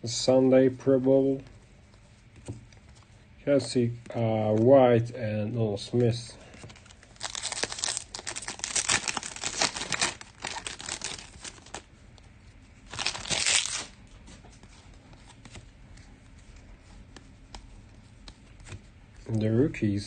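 Trading cards flick and shuffle in hands.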